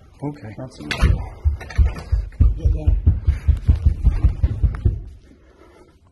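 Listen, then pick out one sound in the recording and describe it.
A door rattles and thumps rapidly in its frame.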